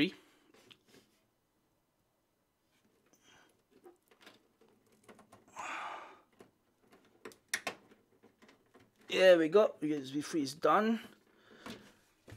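Cables rustle and a plug clicks into place.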